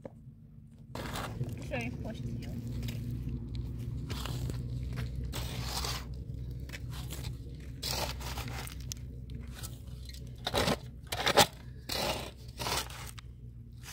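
A trowel scrapes and slaps wet mud onto stone.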